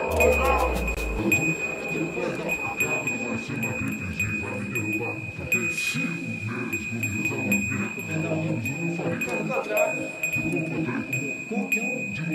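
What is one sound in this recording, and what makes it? A man talks calmly into a nearby microphone.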